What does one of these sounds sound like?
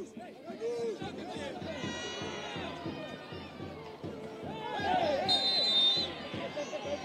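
A crowd of spectators cheers and shouts in the distance.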